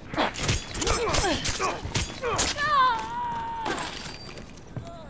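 Heavy blows and scuffling sound at close range.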